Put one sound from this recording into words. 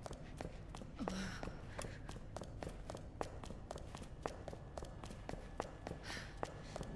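Footsteps tap quickly down wooden stairs and across a hard floor.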